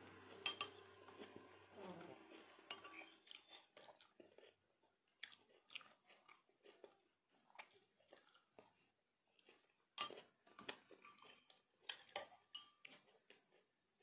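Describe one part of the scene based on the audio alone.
A woman slurps and eats noisily up close.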